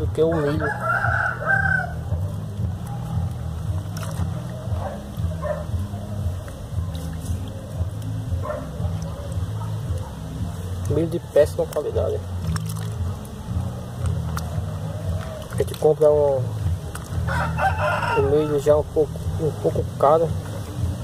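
A hand swishes and stirs soaked grain in a tub of water.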